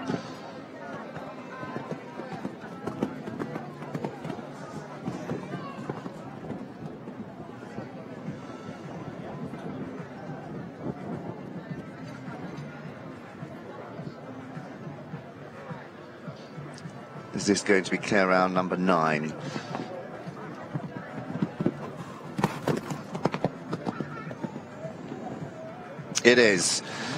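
A horse's hooves thud rhythmically on soft sand.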